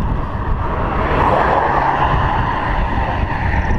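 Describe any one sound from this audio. A pickup truck passes by in the opposite direction.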